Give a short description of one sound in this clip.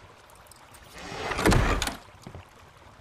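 A wooden box bangs shut.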